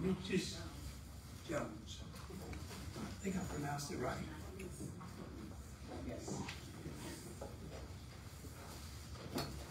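A man speaks to a small room, heard from a few metres away.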